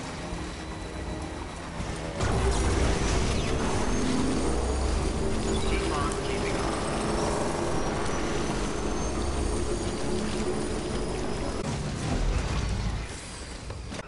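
Tyres crunch over dirt and rocks.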